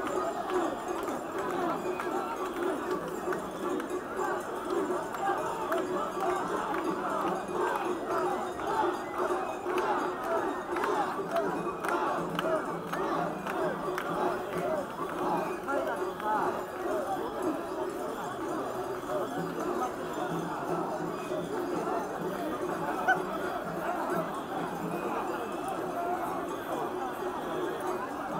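A large crowd shouts and chants outdoors.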